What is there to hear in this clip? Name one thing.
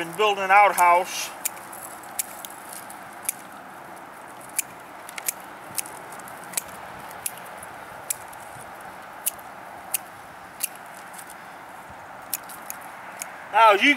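Pruning shears snip through stems with sharp clicks.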